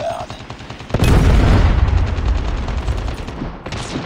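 A missile explodes with a deep, heavy boom.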